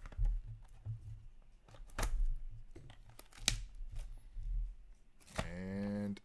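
Hands tap and rustle a cardboard box.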